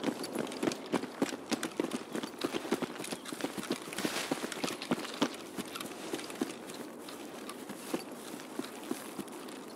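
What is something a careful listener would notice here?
Footsteps crunch through grass and gravel at a quick pace.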